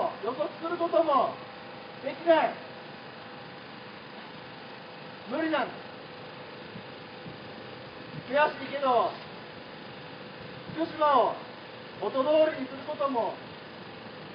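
A young man shouts slogans in short bursts through a loudspeaker, outdoors.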